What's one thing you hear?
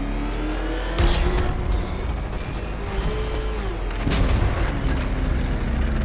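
A loud crash bursts with debris clattering.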